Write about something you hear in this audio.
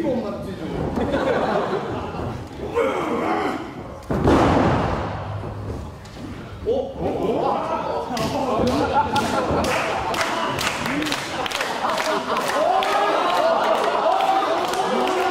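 A crowd cheers and shouts in a large echoing hall.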